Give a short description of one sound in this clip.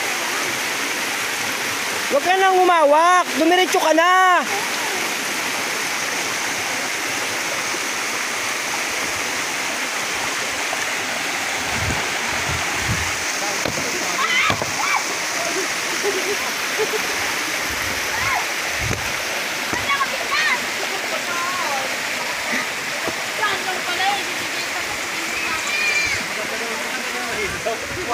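A river rushes steadily over rocks nearby.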